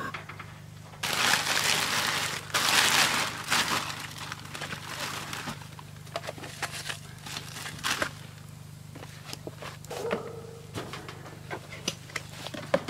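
Small objects knock and clatter close by.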